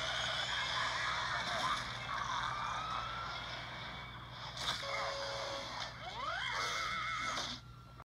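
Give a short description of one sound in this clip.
A cartoon soundtrack of music and sound effects plays from a television speaker.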